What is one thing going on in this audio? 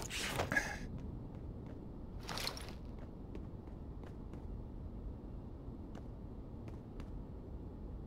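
Boots tread on a hard floor at a steady walking pace.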